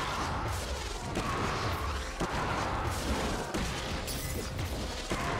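Magic attacks whoosh and crackle in a game.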